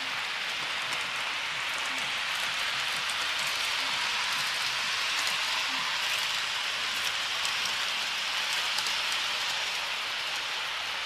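Small clicks sound as a model train's wheels pass over rail joints.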